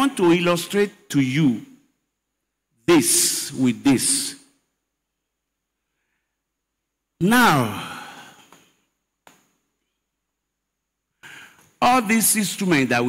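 A man preaches forcefully into a microphone, his voice amplified over loudspeakers in a large hall, with long pauses between phrases.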